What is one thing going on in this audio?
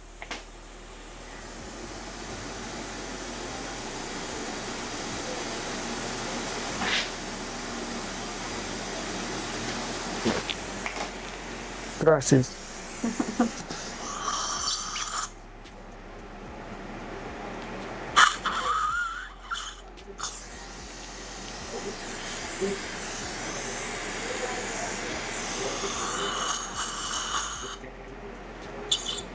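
A dental suction tool hisses steadily close by.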